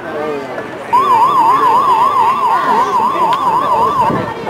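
A scoreboard horn blares loudly with a fast warbling tone.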